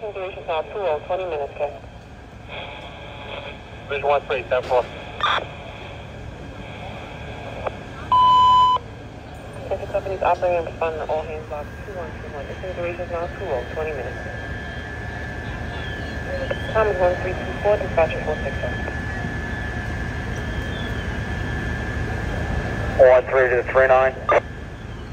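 Men talk nearby in short bursts.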